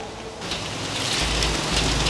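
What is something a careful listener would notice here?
Water splashes as it pours from a pan into a shallow stream.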